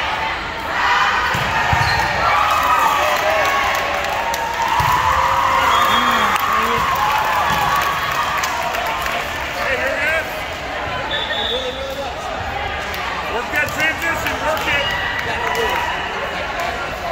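Many voices of young women chatter and call out across a large echoing hall.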